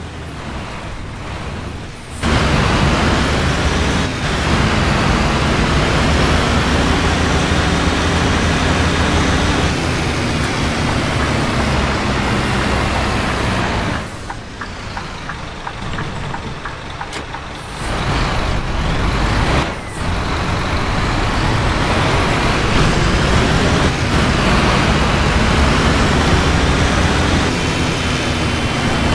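A bus engine hums and rumbles while driving.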